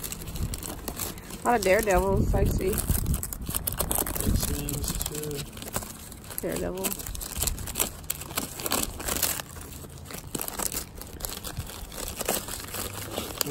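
Plastic sleeves crinkle and rustle as gloved hands flip through them.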